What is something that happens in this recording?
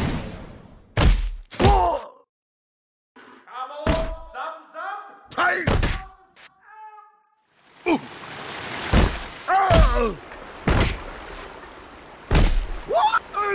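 A body thuds hard against stone steps again and again.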